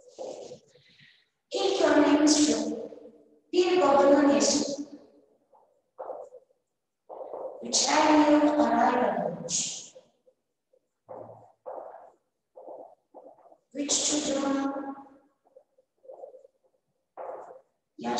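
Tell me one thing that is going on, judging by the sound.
A marker squeaks on a whiteboard.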